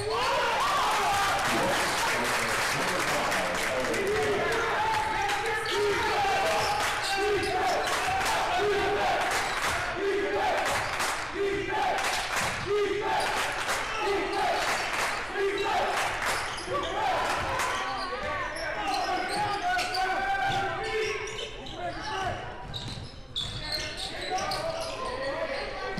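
A crowd of spectators talks and cheers loudly in a large echoing gym.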